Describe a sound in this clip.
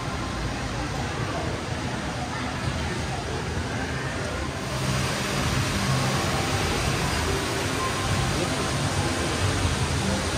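A crowd murmurs indistinctly in a large echoing hall.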